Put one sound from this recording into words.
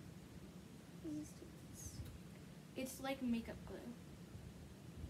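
A young girl speaks briefly and softly close by.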